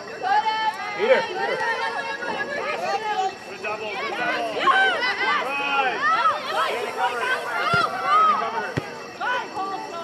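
Young women shout and cheer loudly outdoors.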